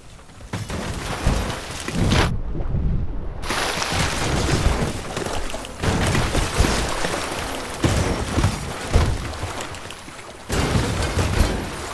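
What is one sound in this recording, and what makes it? A wooden house crashes and splinters as it breaks apart.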